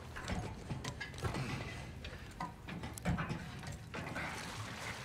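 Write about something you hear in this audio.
Metal clanks as someone climbs a ladder.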